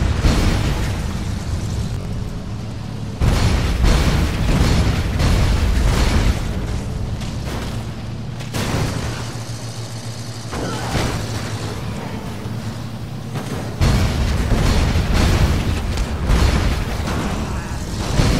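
A heavy armoured vehicle's engine roars as it drives along.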